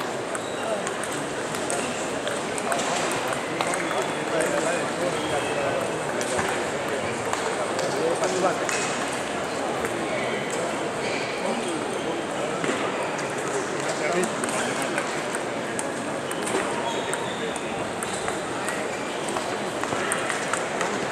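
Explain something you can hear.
A large hall echoes with the steady murmur of a crowd.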